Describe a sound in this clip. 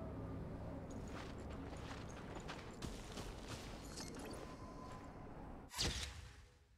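Footsteps crunch quickly through snow and grass.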